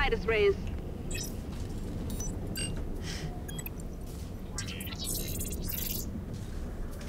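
An electronic terminal chirps and whirs as it processes.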